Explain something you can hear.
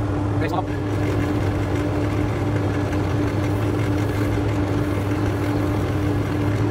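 A lathe motor hums steadily close by.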